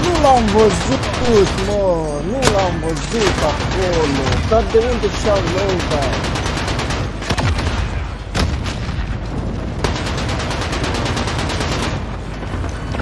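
A mounted machine gun fires in rapid bursts.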